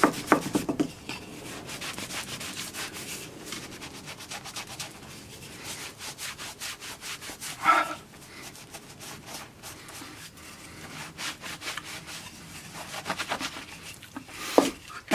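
A cloth rubs briskly over a wooden board.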